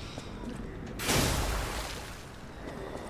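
Glass shatters loudly.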